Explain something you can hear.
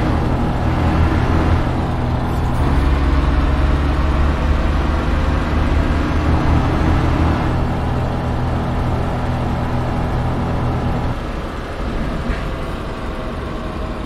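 A truck engine hums steadily, then eases off.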